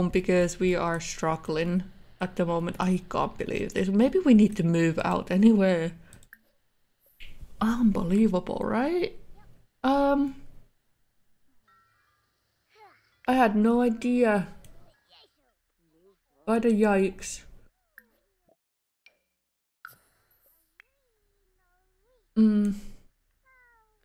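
A young woman talks with animation into a close microphone, in bursts with pauses.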